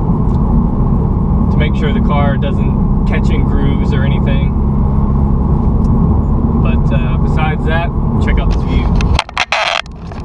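A car engine hums loudly and steadily inside the cabin.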